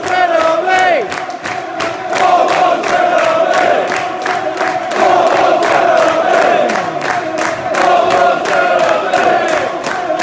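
A stadium crowd claps in a steady rhythm.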